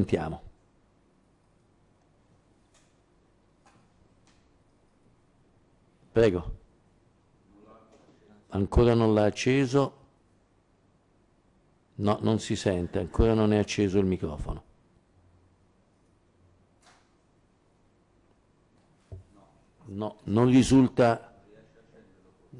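A middle-aged man speaks calmly into a microphone in short bursts, with pauses.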